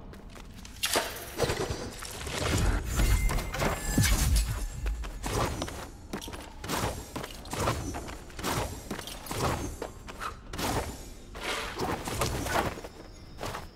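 Blades whoosh and clash as a game character fights.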